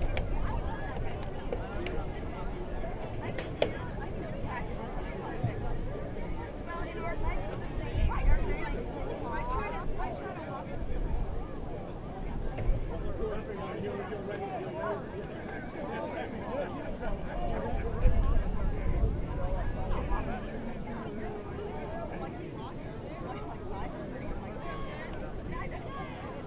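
A large crowd of children and adults chatters and shouts outdoors.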